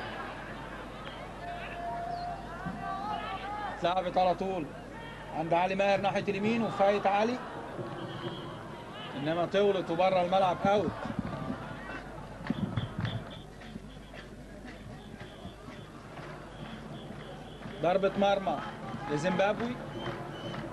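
A crowd murmurs across a large open stadium.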